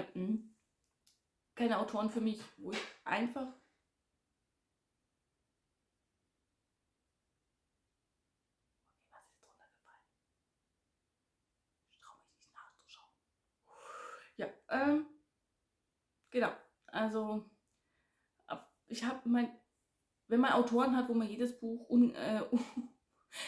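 A woman talks with animation close to a microphone, with pauses.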